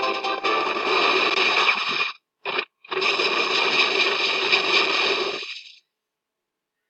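Swords clash and fiery magic bursts in a fast game battle.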